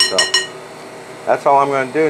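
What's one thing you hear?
A spoon scrapes against a glass bowl.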